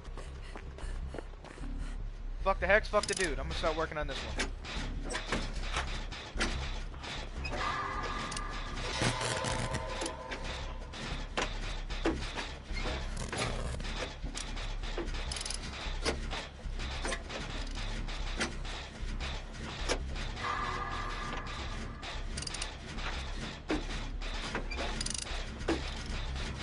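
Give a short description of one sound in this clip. A machine clanks and rattles with steady, quick knocks.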